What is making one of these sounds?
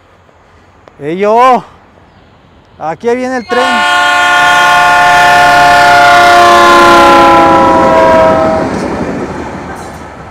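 A train horn blasts loudly in short bursts, then in one long blast that drops in pitch and fades.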